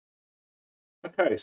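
An elderly man speaks calmly and close by.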